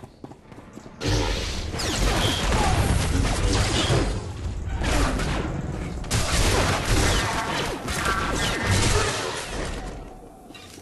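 Lightsabers hum and clash in a fast fight.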